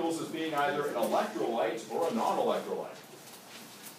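A man speaks loudly and with animation in a room.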